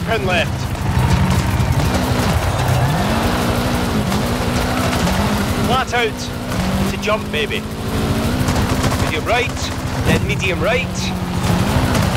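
A car engine revs hard, rising and falling as gears change.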